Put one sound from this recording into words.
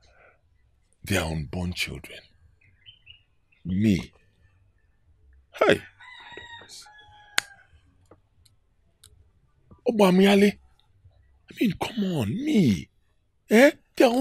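A second middle-aged man answers with animation.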